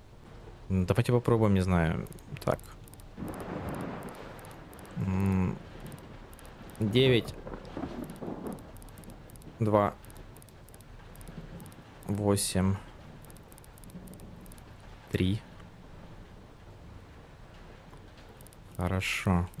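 A combination dial clicks as it turns.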